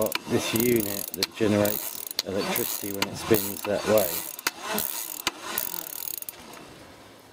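A bicycle freewheel ticks rapidly as it is turned by hand.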